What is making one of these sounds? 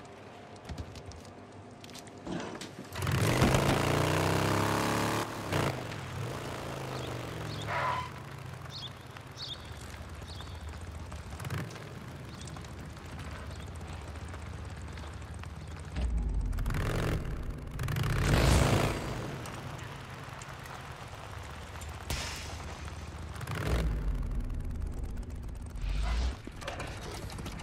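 A motorcycle engine rumbles and revs as it rides along.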